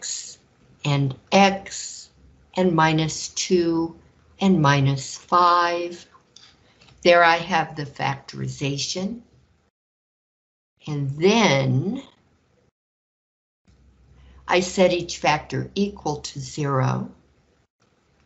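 An elderly woman explains calmly through a microphone, in pauses.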